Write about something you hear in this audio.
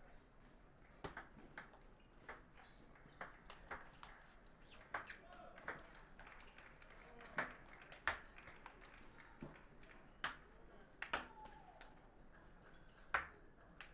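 A table tennis ball clicks back and forth off paddles and a table in a quick rally.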